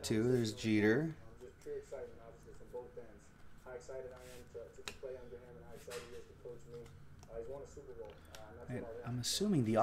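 Trading cards slide and rustle between fingers.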